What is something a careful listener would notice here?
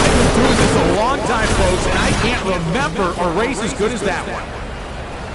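A race car engine winds down as the car slows.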